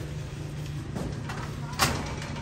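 A metal door rattles nearby.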